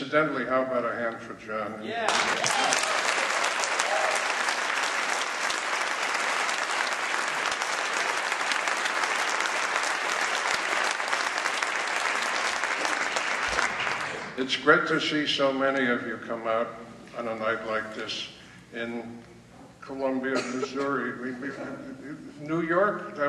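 An elderly man speaks calmly into a microphone, heard through loudspeakers.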